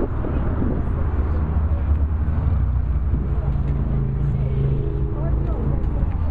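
A crowd of adults chatters in the distance.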